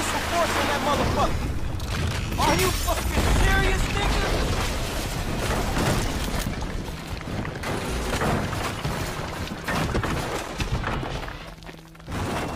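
A building collapses with a loud crashing rumble.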